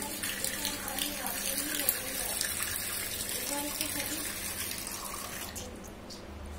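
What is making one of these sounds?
Water runs from a tap and splashes onto a floor.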